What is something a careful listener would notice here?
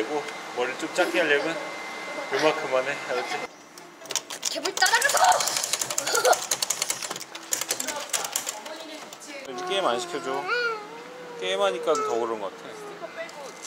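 Young boys talk and laugh excitedly nearby.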